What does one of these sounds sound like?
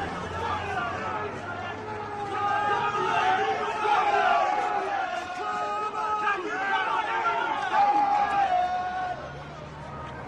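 A crowd of men chants loudly in unison.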